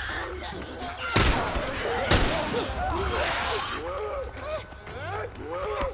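A man grunts and shouts while struggling.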